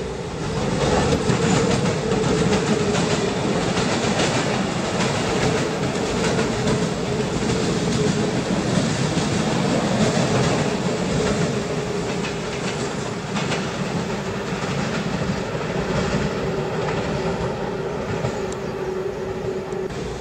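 Traction motors on an electric commuter train whine steadily.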